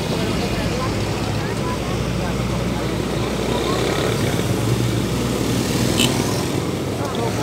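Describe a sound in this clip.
A truck engine rumbles as it drives past.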